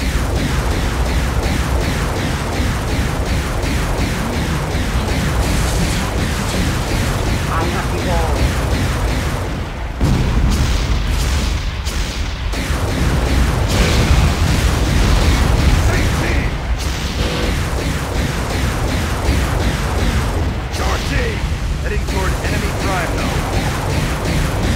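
Energy weapon shots fire rapidly in quick bursts.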